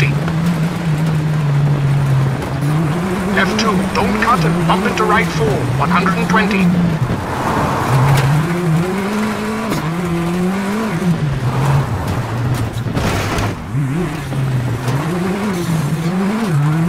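Gravel crunches and rattles under the tyres.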